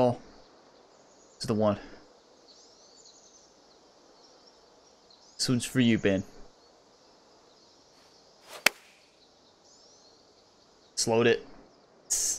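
A young man speaks in short bursts, close to a microphone.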